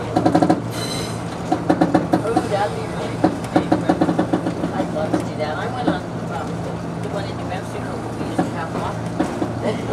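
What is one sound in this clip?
Steel wheels clatter over rail joints on a steel truss bridge.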